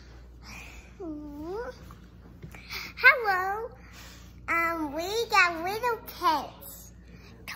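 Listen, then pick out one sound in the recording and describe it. A young girl speaks excitedly close by in a high, sing-song voice.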